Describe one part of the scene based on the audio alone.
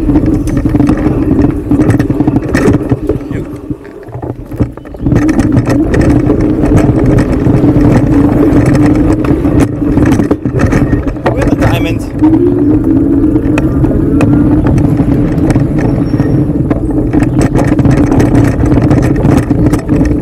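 An electric bike motor whirs steadily.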